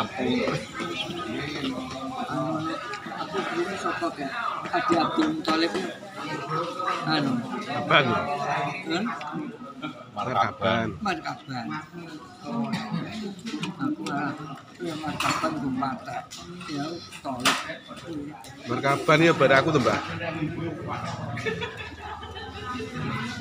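Fingers squish and scrape rice on a metal tray.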